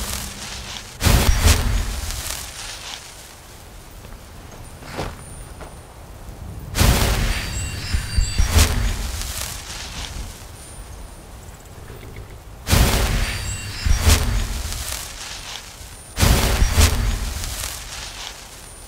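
Magic spells burst and crackle loudly again and again.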